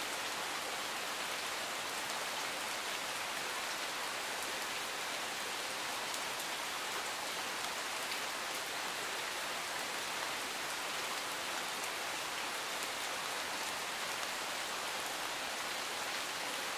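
A stream flows steadily over rocks nearby.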